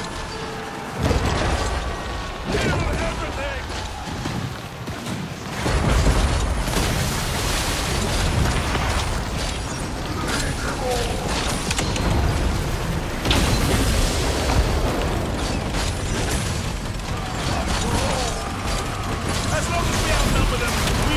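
A war machine fires loud booming blasts.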